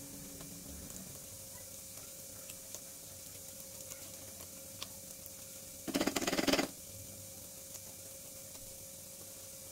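A hand squishes and mixes soft butter in a metal bowl.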